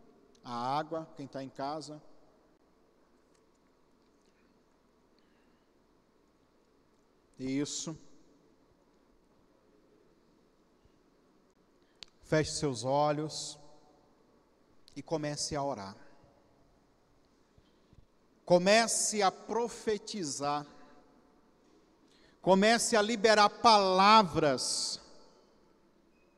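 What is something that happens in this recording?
A man speaks into a microphone in short bursts with long pauses, heard through a loudspeaker.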